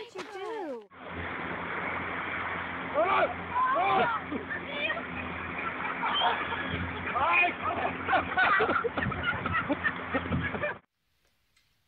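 A crowd of people laughs and shouts outdoors.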